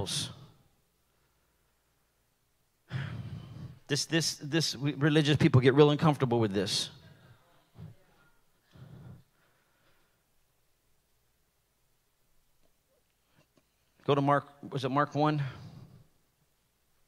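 A middle-aged man speaks with animation through a microphone, pausing now and then.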